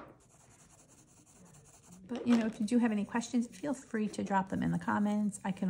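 A marker squeaks and scratches softly across paper.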